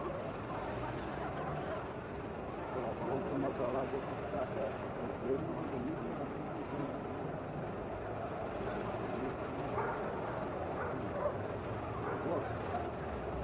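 A crowd of people chatter outdoors in the distance.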